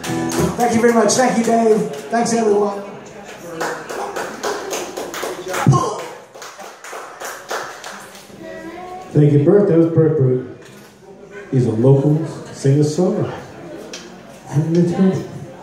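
A man sings into a microphone.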